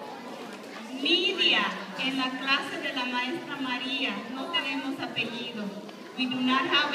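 A woman speaks loudly through a microphone.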